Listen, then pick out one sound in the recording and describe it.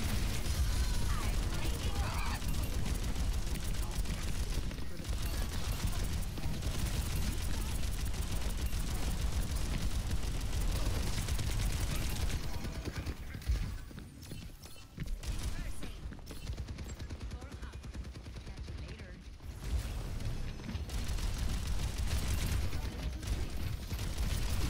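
Rapid gunfire and energy blasts crackle from a game.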